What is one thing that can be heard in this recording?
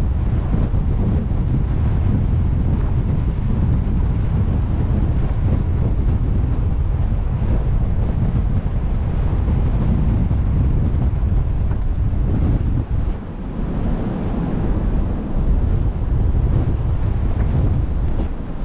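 Strong wind buffets and rumbles outdoors.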